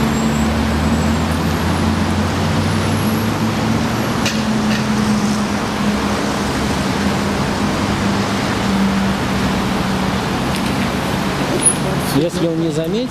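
A car engine idles close by with a low steady hum.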